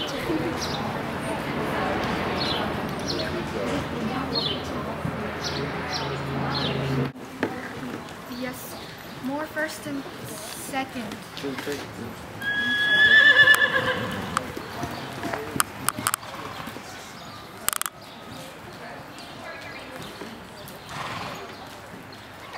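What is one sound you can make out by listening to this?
A horse trots with soft, steady hoofbeats on soft dirt.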